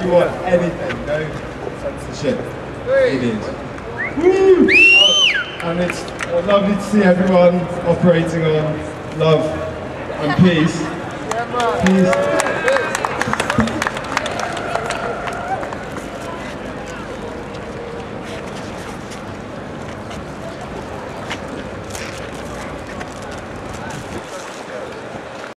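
A large seated crowd murmurs softly outdoors.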